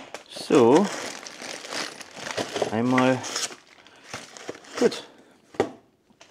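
A cardboard box scrapes open.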